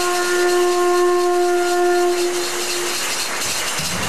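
A horn sounds one long, steady blast up close.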